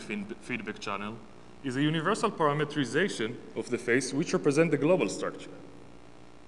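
A young man speaks calmly through a microphone.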